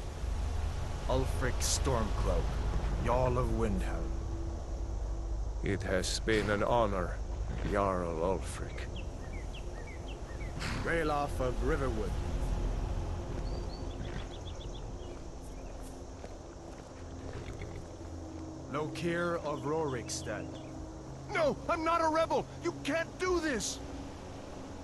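A man speaks calmly and firmly, close by.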